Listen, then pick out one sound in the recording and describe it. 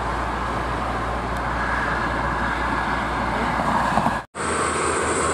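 A heavy truck drives past on a highway with a steady engine roar.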